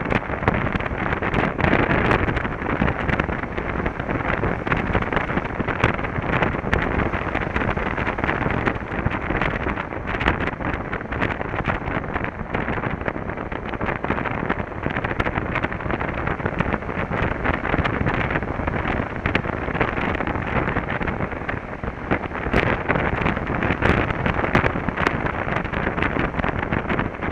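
Wind buffets loudly against a rider's helmet.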